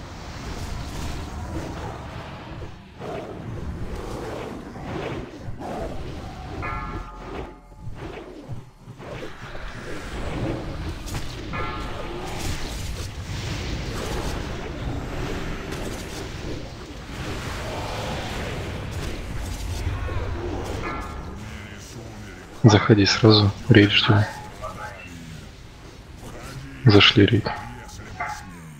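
Magic spells crackle and burst again and again amid a roaring fire.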